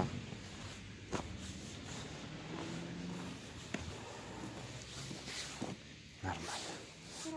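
Footsteps crunch on frozen ground.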